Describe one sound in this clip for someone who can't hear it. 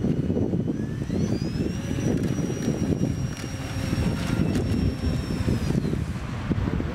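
A small electric motor whines and rises in pitch.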